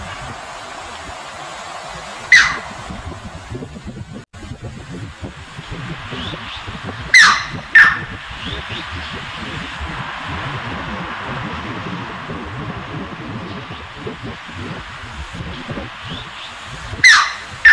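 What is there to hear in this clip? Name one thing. A heron splashes as it wades through flowing water.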